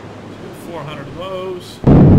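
Thunder cracks loudly.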